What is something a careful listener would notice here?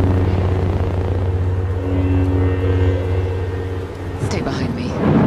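An energy blade hums steadily and low.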